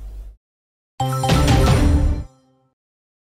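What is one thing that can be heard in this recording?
A short triumphant jingle plays.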